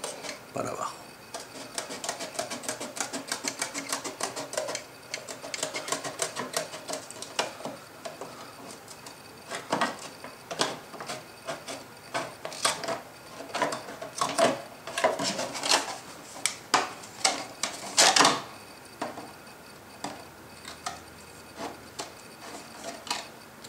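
Scissors snip through stiff plastic in quick repeated cuts.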